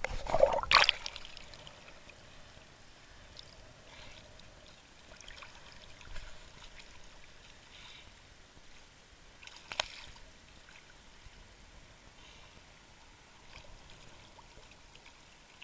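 Small waves lap gently at the water's surface.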